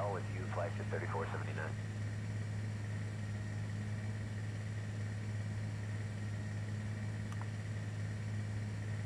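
Jet engines hum with a steady, low drone.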